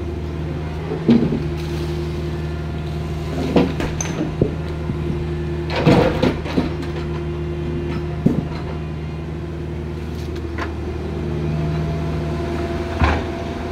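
Rocks clunk and knock against each other as an excavator moves them.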